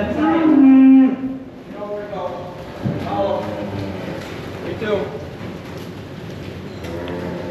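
Cows moo loudly, one after another.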